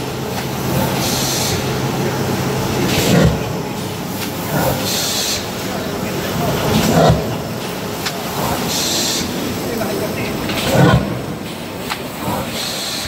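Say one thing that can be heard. Air hisses in regular bursts.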